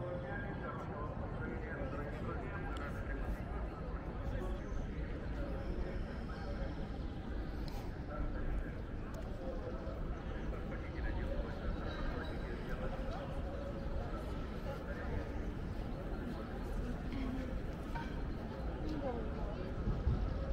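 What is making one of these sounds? A crowd murmurs faintly in the distance outdoors.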